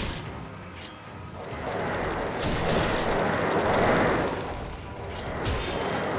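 A sword slashes and clangs against a monster.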